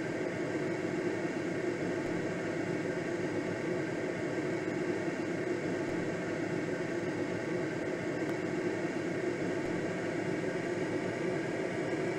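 Wind rushes steadily past a glider's canopy.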